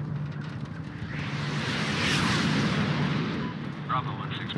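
Jet planes roar past overhead.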